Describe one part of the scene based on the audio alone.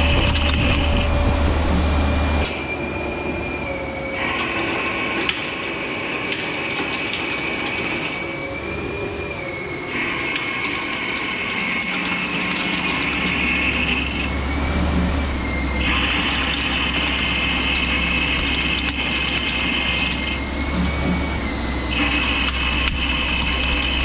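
A CNC lathe's spindle whirs at speed with a steady whine.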